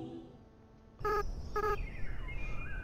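Short electronic beeps chime from a video game.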